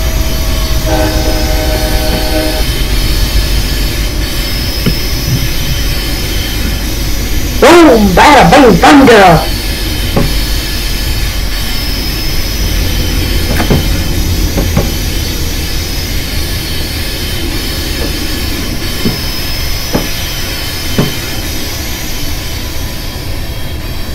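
A locomotive engine rumbles low and steadily.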